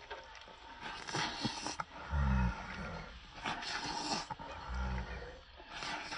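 A young person slurps noodles loudly.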